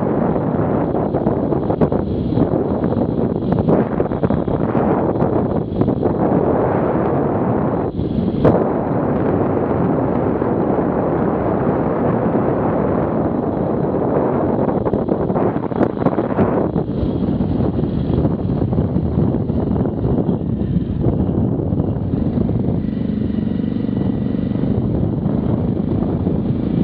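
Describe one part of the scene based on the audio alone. Wind roars loudly past a moving motorcycle.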